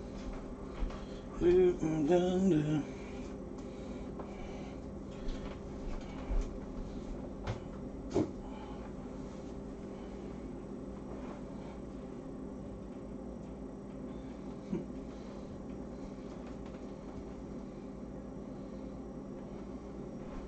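A pot of soup bubbles softly as it simmers.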